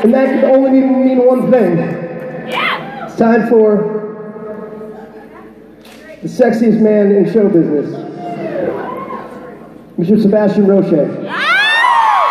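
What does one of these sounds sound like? A man sings through loudspeakers in a large echoing hall.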